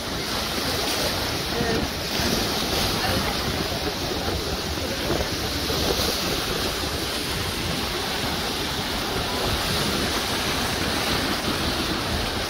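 Waves splash and wash over rocks close by.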